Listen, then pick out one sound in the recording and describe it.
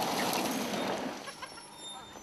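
Gravel sprays and crunches under tyres.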